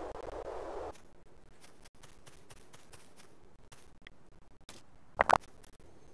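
Footsteps patter on grass in a game.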